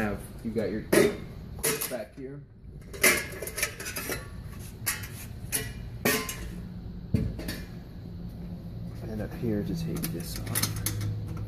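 Metal parts clank and rattle as a machine is handled.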